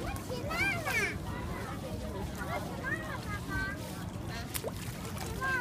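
A young child chatters close by.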